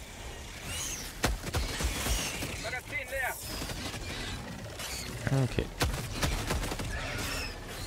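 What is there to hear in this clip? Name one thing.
A laser weapon fires with a sizzling hum.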